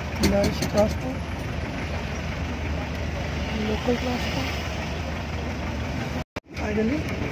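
A diesel jeepney engine rumbles while driving.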